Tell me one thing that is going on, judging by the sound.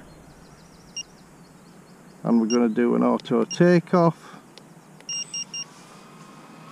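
A remote control beeps in short high tones.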